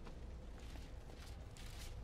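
Heavy footsteps run across a hard floor.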